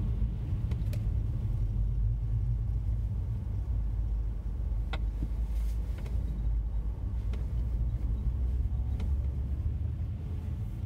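Tyres crunch and hiss over snowy road.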